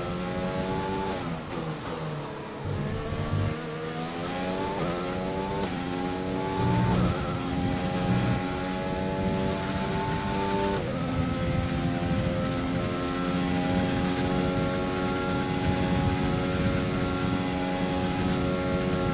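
A racing car engine screams, dropping in pitch as it slows, then climbing through quick gear changes to a steady high whine.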